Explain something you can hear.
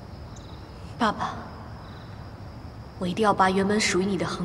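A young woman speaks softly and tensely nearby.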